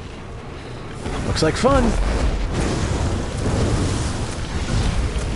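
Fiery magic blasts roar and crackle in a fight.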